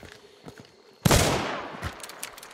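A gunshot bangs loudly and echoes away.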